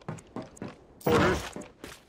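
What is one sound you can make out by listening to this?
Gunfire bursts out in loud, rapid shots.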